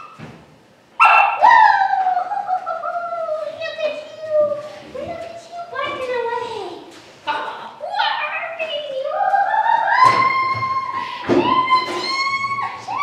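A puppy whines and yelps in high, wavering cries.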